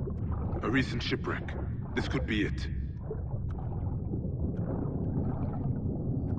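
Bubbles burble and gurgle as a swimmer strokes through water.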